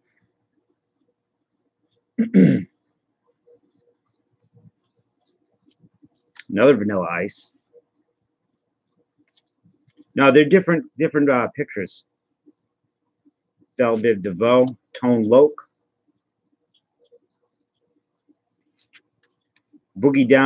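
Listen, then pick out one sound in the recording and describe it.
Trading cards rustle and slide softly as hands flip through them.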